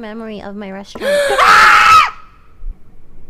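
A young woman laughs loudly into a microphone.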